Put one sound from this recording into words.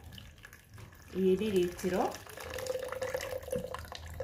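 Water pours from a bottle into a plastic jug.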